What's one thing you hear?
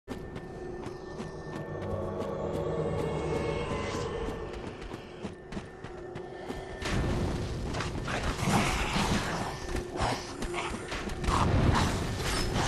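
Footsteps crunch quickly over rough stone.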